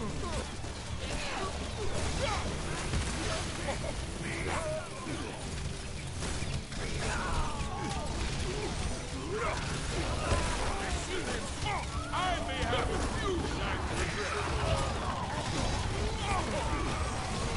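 Game combat sounds clash and burst throughout.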